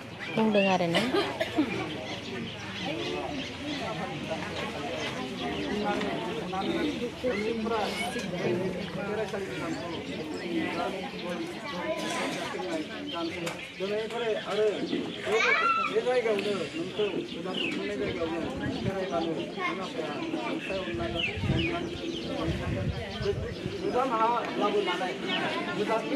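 A group of women and men murmur a prayer together nearby, outdoors.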